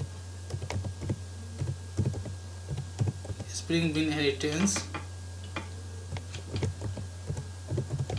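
Keys clack on a keyboard in quick bursts.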